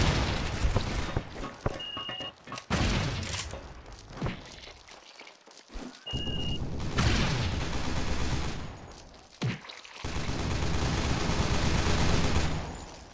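Blades slash and strike in a noisy fight.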